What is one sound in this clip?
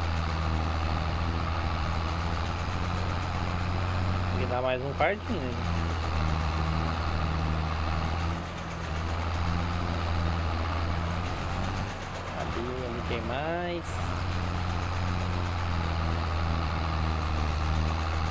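A tractor engine rumbles steadily at low speed.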